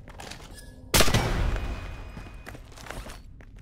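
A single rifle shot rings out loud and echoes.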